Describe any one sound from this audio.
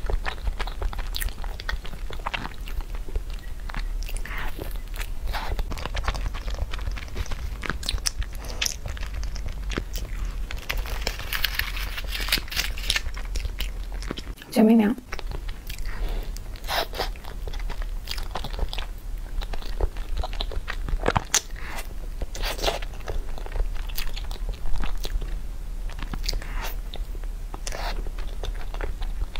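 A young woman bites and chews soft food close to a microphone.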